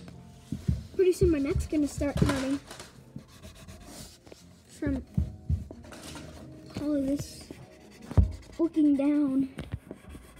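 A child talks and exclaims close by.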